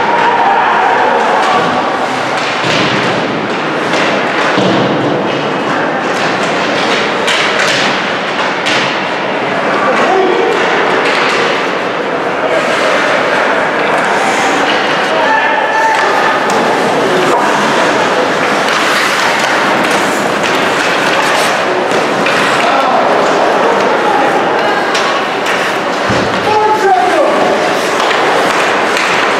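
A crowd of spectators murmurs and calls out in a large echoing rink.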